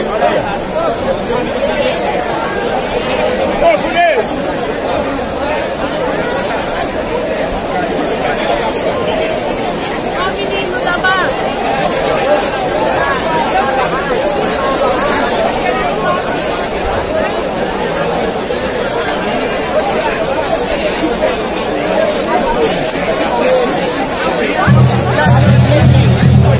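A crowd of fans sings and chants together.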